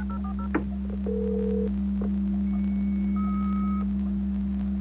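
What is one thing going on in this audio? A computer beeps.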